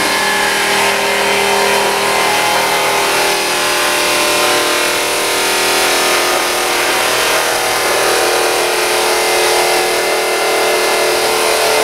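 Water sprays and splashes inside a machine.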